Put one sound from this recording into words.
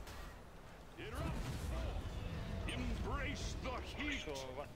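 Fiery magic blasts whoosh and crackle.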